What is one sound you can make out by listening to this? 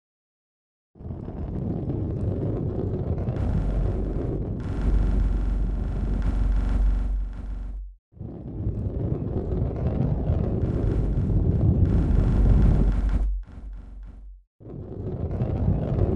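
A heavy ball rolls along with a low rumble.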